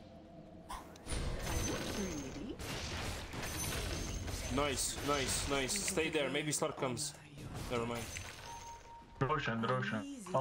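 Game spells and weapons clash and burst during a fight.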